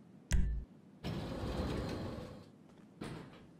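Elevator doors slide open with a rumbling whoosh.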